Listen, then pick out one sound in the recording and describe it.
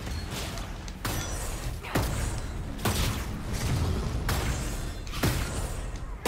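Sharp impacts strike and ring out.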